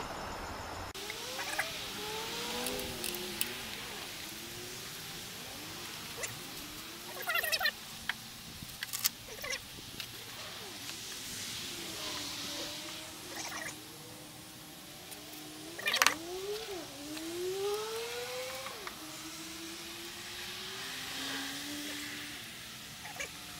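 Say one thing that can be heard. A hand tool scrapes and taps on metal close by.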